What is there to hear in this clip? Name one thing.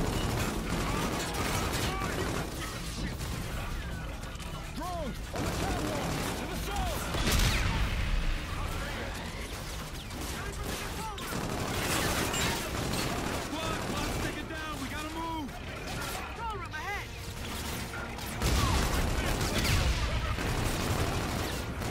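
A rifle fires rapid bursts of gunshots nearby.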